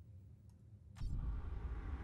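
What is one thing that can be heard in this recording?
A menu button clicks.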